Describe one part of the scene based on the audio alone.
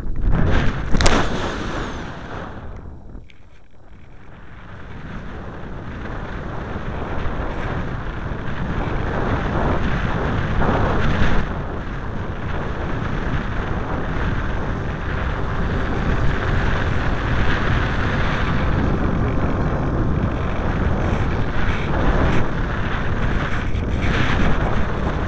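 Wind rushes loudly and roughly past a gliding model plane.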